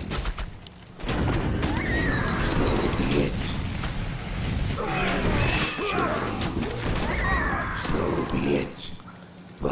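Fiery explosions roar and crackle in quick succession.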